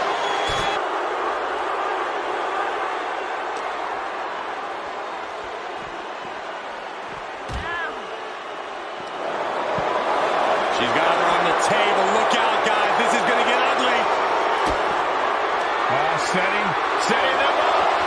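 A large crowd cheers and roars steadily, growing louder partway through.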